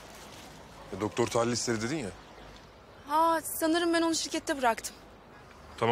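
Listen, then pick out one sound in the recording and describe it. A young woman speaks urgently, close by.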